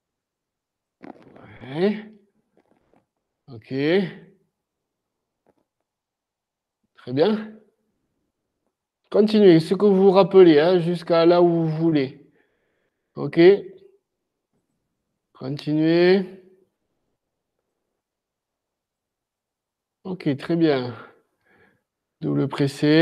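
A man speaks calmly in short phrases with pauses, heard through an online call.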